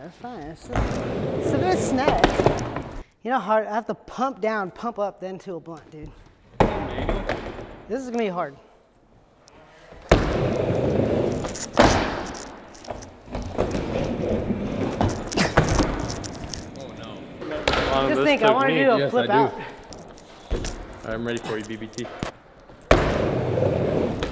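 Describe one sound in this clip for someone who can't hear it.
Skateboard wheels roll and rumble across a wooden ramp.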